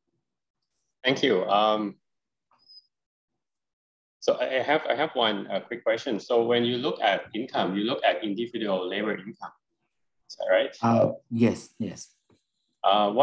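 A man speaks calmly through a microphone on an online call, pausing between phrases.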